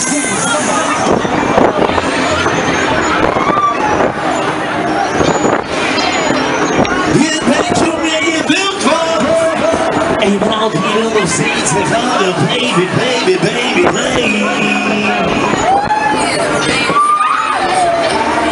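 Loud music plays over loudspeakers.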